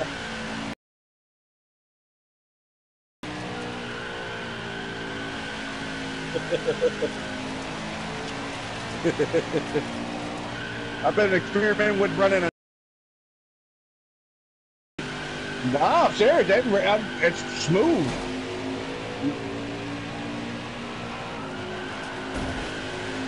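A V8 stock car engine roars at high revs.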